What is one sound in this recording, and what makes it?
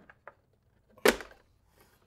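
A plastic model knocks against a table.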